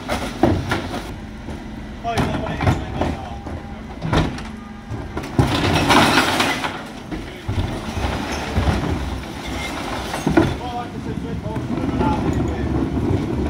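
A refuse truck's engine rumbles steadily close by.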